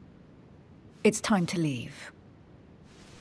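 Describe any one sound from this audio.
A woman says a few short words quietly.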